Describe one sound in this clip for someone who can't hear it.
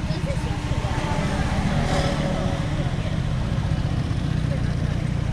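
A motor scooter engine passes close by.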